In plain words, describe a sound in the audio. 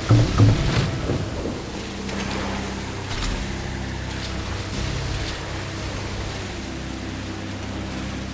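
Water splashes and hisses beneath a speeding boat.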